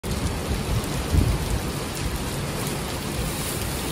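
Rain falls steadily on a wet street.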